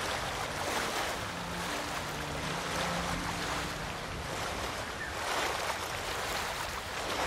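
Water splashes and churns as a rider wades through a shallow river.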